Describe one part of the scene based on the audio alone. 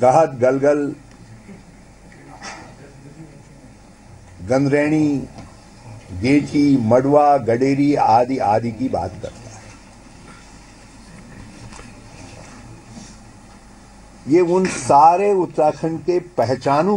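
An older man speaks calmly into a microphone, in pauses.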